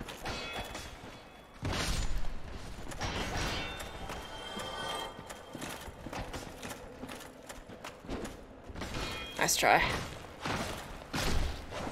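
Swords clash and clang in a video game.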